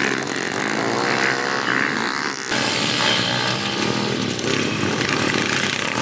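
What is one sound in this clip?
Dirt bike engines rev and whine loudly nearby.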